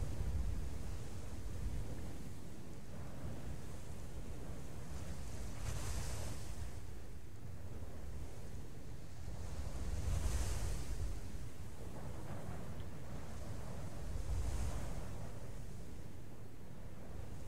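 Waves wash and swell steadily on open water.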